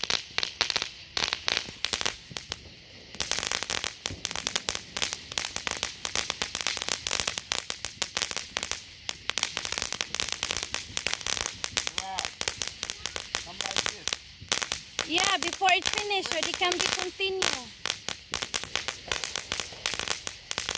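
Ground fireworks crackle and pop rapidly close by outdoors.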